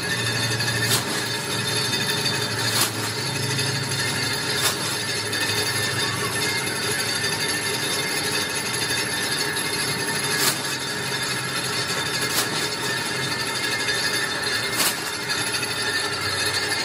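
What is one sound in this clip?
A machine hums and rattles steadily.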